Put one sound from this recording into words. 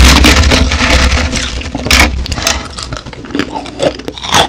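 A woman crunches ice loudly, very close to a microphone.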